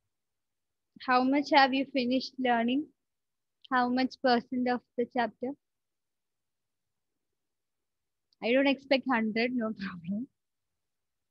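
A young woman speaks calmly into a headset microphone, in pauses.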